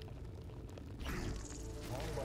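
Footsteps tread on a damp path.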